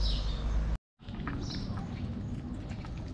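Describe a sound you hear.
A cat chews and laps food with soft wet clicks.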